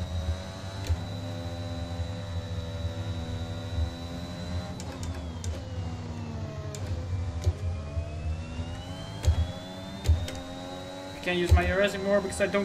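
A racing car engine whines at high revs, dropping in pitch as it slows and rising again as it speeds up.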